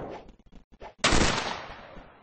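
A musket fires with a loud bang.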